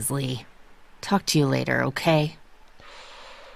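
A woman speaks curtly.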